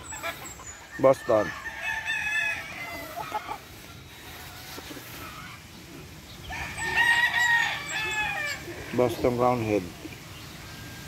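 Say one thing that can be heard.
A rooster crows loudly nearby.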